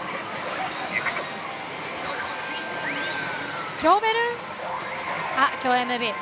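A slot machine plays electronic music and chiming sound effects.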